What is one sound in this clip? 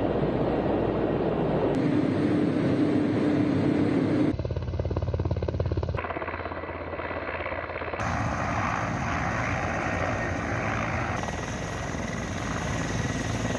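A helicopter's rotor thuds and roars overhead.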